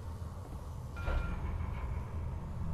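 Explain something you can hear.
A sharp electronic zap bursts out and fades.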